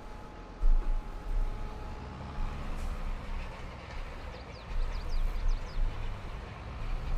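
A harrow rumbles over the soil.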